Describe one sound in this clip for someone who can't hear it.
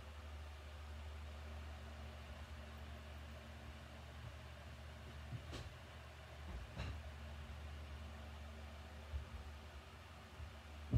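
An electric fan hums steadily nearby.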